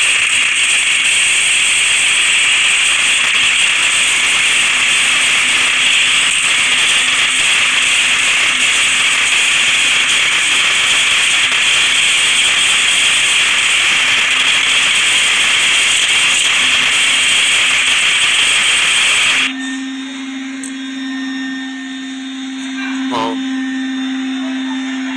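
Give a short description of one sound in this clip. Video game sounds play from a small phone speaker.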